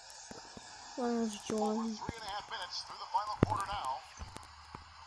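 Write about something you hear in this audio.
A young boy talks close to a microphone.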